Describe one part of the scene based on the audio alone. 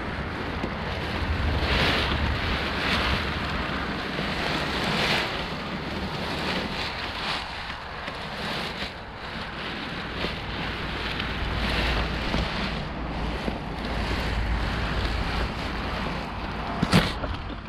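Nylon fabric rustles and flaps as it is gathered.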